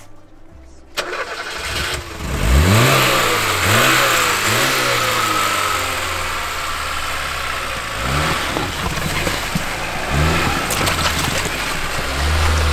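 A car engine starts and revs hard in repeated surges.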